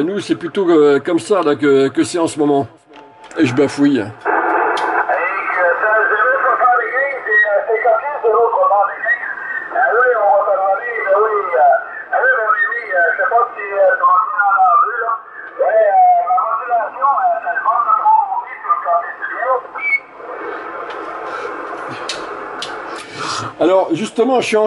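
A radio receiver hisses with static.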